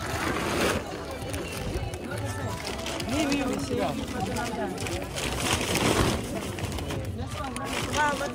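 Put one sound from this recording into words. Several adults talk and call out nearby.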